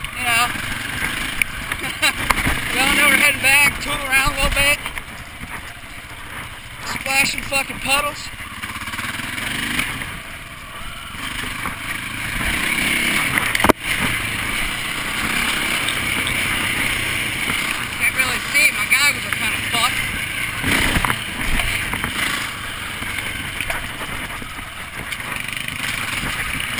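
A dirt bike engine revs and buzzes up close, rising and falling in pitch.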